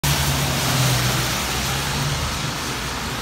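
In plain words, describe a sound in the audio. A car drives past on a wet road, tyres hissing.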